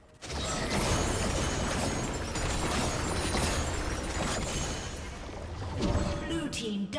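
Spell effects burst and crackle in a fast fight.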